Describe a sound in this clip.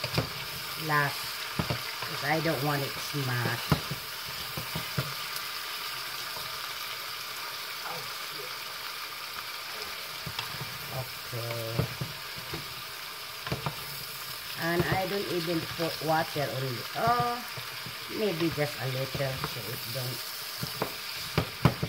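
Vegetables sizzle softly in a hot pot.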